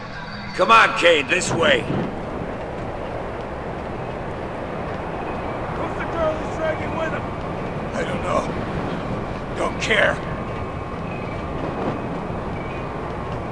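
Footsteps clatter on a metal roof.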